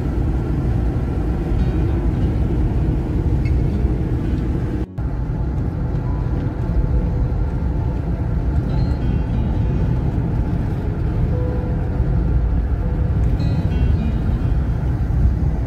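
Tyres rumble steadily on a wet road from inside a moving vehicle.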